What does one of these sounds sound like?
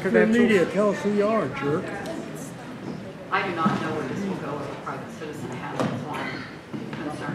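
A middle-aged woman speaks calmly into a microphone in a room with some echo.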